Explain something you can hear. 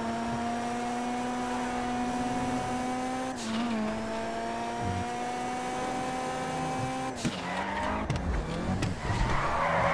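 A car engine revs high and shifts gears as the car speeds up.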